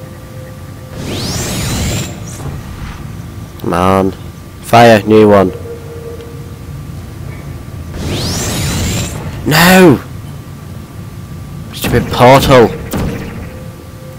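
A portal gun fires with a whooshing electronic zap.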